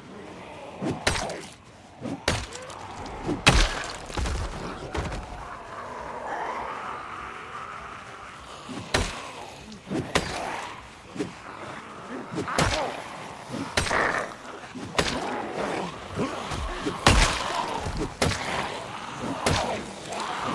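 Heavy blows thud and smack against bodies in a scuffle.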